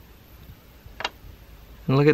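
A plastic part clicks into place.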